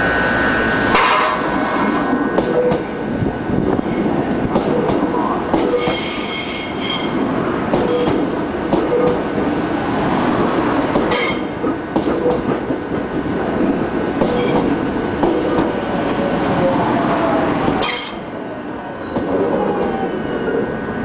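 A train rushes past close by, its wheels clattering loudly on the rails.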